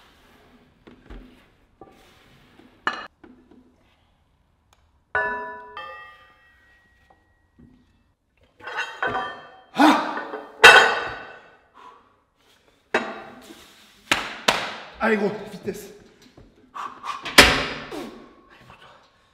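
Heavy metal weight plates clank and ring as they are set down.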